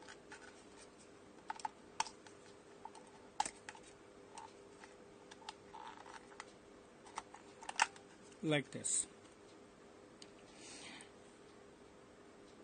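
Plastic parts click and rattle as a battery cover is handled.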